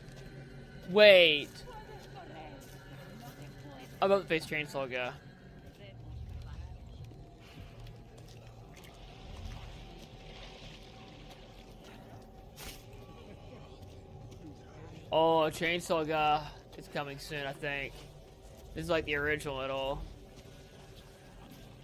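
Footsteps creep softly over dirt.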